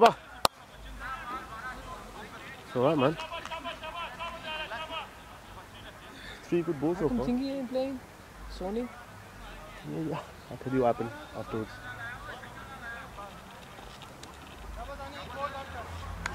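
Men call out and talk across an open field.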